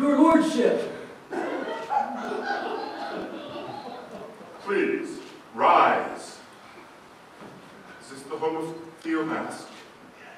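A man speaks loudly and dramatically, heard from a distance in a large hall.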